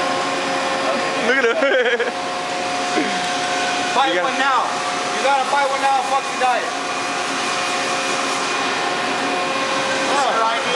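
Machines hum steadily in the background.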